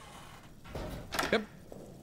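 A metal door handle rattles.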